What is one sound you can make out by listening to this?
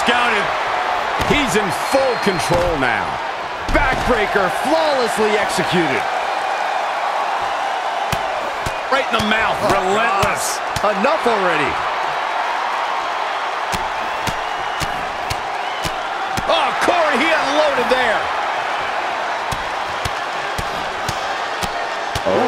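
Bodies thud hard onto a wrestling mat.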